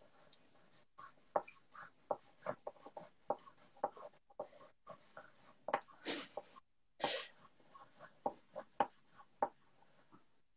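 Pencils scratch and tap on paper.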